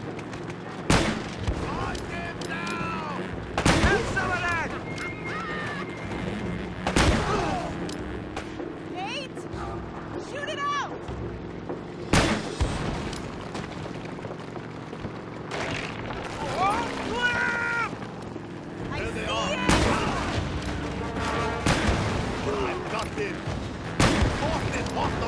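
Loud explosions boom one after another.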